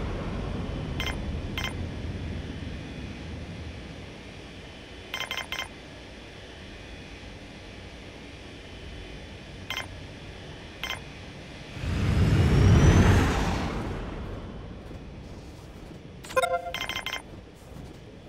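Soft interface clicks sound in quick pairs.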